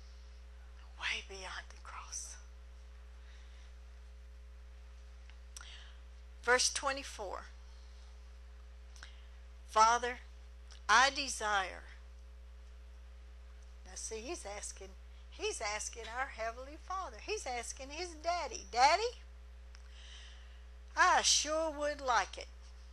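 A middle-aged woman speaks calmly into a microphone, in short phrases with pauses.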